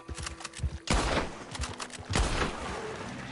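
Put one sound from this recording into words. A gunshot cracks loudly.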